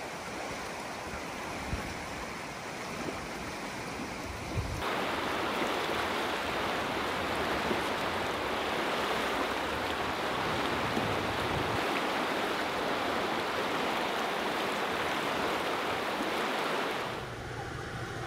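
A fast river rushes loudly close by.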